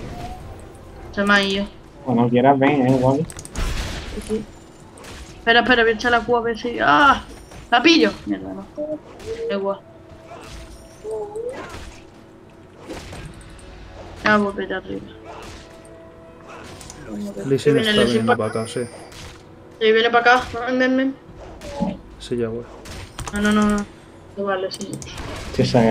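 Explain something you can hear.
Video game blows and spell effects clash in a fight.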